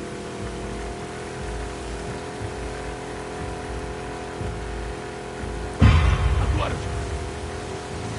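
Water splashes and churns behind a moving boat.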